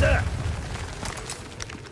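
A pistol fires a shot.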